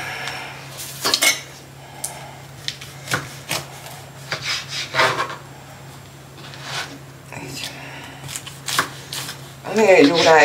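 A knife saws through crusty bread.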